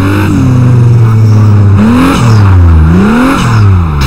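Tyres skid and hiss on snow.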